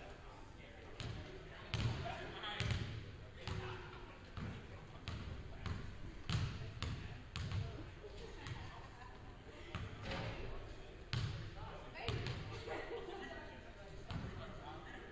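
A basketball bounces on a hard floor in a large echoing gym.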